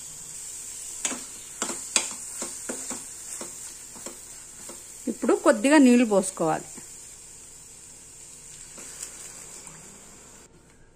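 A metal spoon scrapes and clinks against a pan while stirring a thick mixture.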